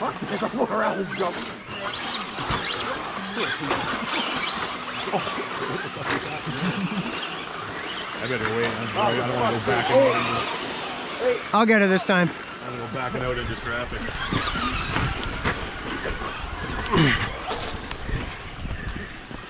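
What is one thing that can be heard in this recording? Small electric motors of remote-control cars whine and rev.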